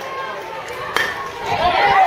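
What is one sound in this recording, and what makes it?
A metal bat cracks against a ball.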